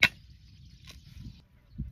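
A knife chops leafy greens.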